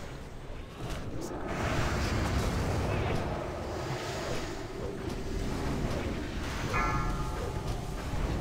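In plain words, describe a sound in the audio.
Magic spells and weapons crash and whoosh in a noisy fantasy battle.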